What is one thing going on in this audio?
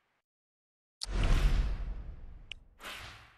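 A deep whooshing burst swells and fades.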